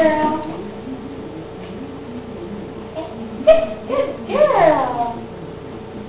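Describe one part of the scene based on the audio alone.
A woman talks to a dog close by in a coaxing voice.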